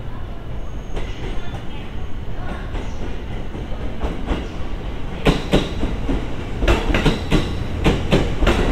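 A train's wheels clatter and click over rail joints.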